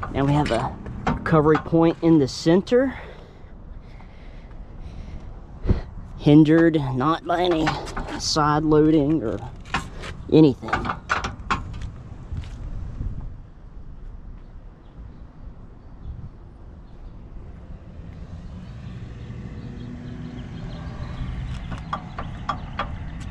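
A rope shackle knocks lightly against a metal hitch receiver.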